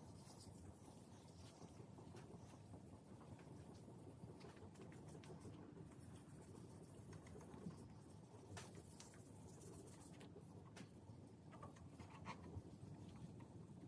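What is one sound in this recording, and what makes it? A hand rubs a cloth pad along a smooth surface with a soft swishing.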